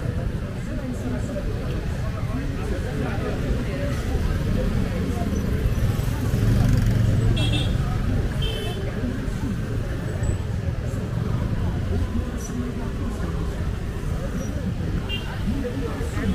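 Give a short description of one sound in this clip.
Motorcycle engines hum and putter as they ride slowly past.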